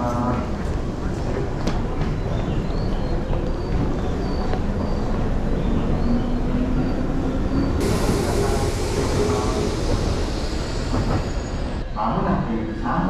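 A train rumbles at a platform.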